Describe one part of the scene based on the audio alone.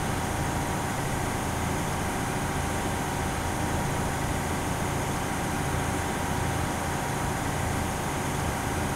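An armoured vehicle's engine rumbles steadily as it drives along a dirt track.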